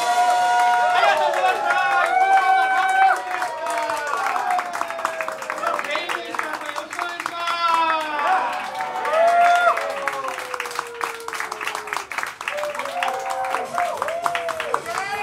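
A band plays funk with drums, bass and electric guitar.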